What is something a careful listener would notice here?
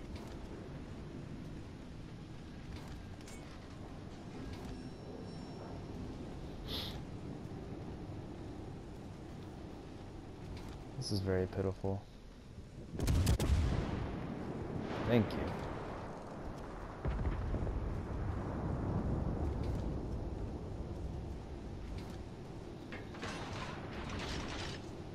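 Water rushes steadily along a moving ship's hull.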